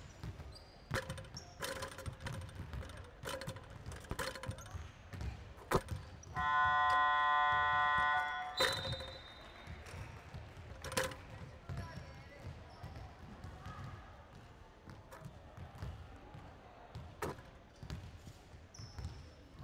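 Basketballs bounce with sharp thuds, echoing through a large hall.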